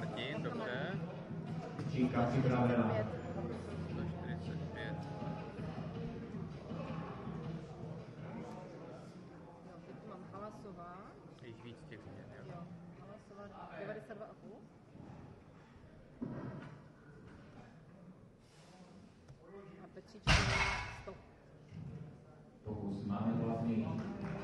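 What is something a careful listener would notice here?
Men talk in an echoing hall.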